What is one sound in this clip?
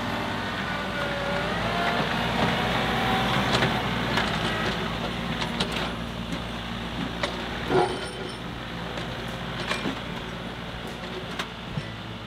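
A tractor engine hums and strains as it drives over dirt.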